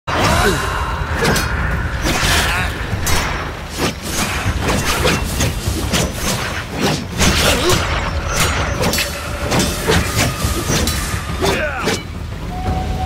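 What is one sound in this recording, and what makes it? Swords clash and ring out in rapid blows.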